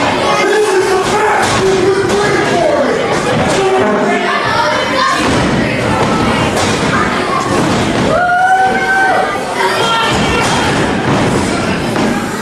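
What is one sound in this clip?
A crowd in a large echoing hall chatters and shouts.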